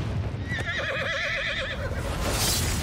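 A large creature lets out a wavering, shrill screech.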